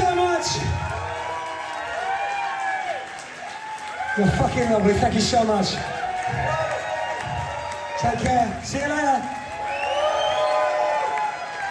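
A man sings loudly through a microphone in a large hall.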